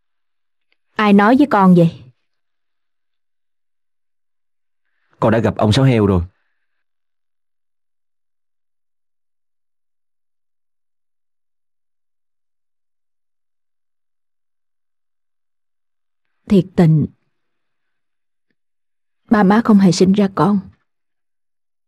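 A woman speaks earnestly, close by.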